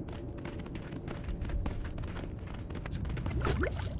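A large creature's wings whoosh as it swoops past.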